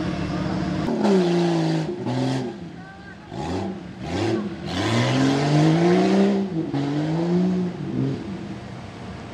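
A truck engine revs up and down as it struggles in deep mud.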